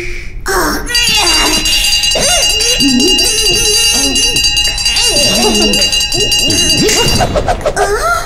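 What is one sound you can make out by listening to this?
A small hand bell rings steadily.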